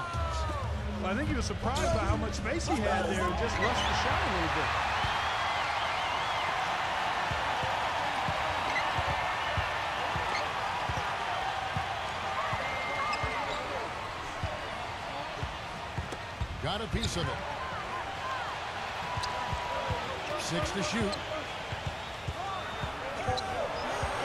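Basketball shoes squeak on a hardwood court.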